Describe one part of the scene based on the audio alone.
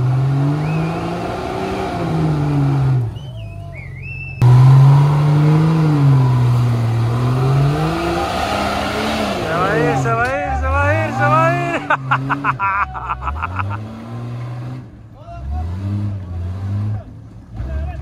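A rock crawler buggy's engine revs hard as it climbs.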